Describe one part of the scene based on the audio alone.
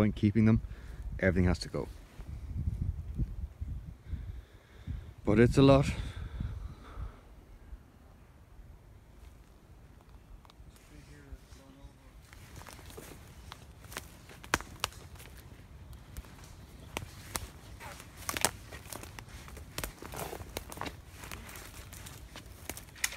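Footsteps crunch through dry twigs and leaves.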